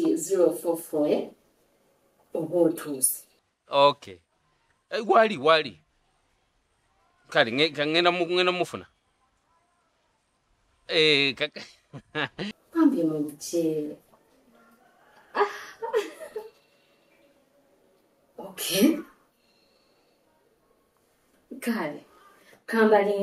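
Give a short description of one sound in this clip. A woman talks on a phone, close by, with animation.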